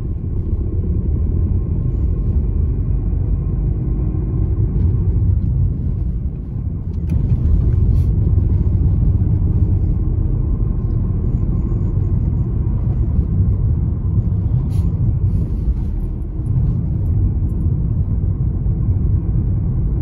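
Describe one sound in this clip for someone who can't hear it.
A car engine hums steadily and tyres rumble on the road from inside the car.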